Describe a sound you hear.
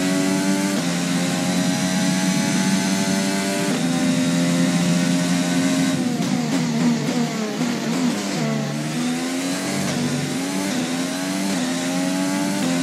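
A racing car engine screams at high revs, shifting gears as it speeds up.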